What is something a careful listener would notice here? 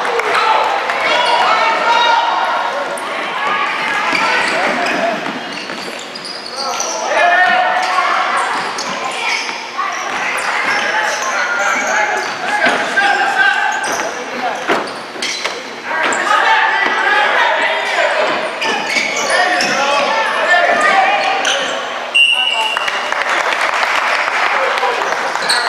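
Young players and spectators shout and cheer in a large echoing hall.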